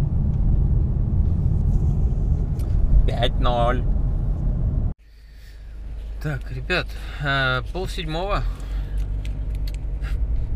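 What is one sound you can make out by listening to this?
A car's engine and tyres rumble low and steady.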